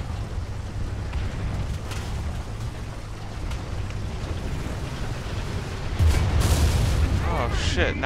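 Tank tracks clank and rattle over the ground.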